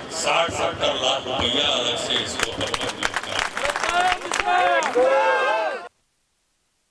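A man speaks into a microphone outdoors.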